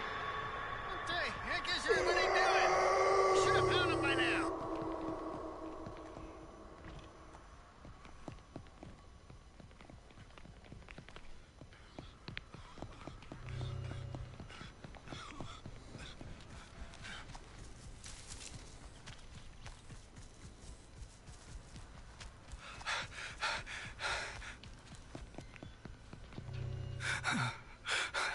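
Footsteps tread on wooden boards and dirt.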